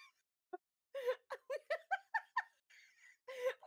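A young man laughs in short bursts close to a microphone.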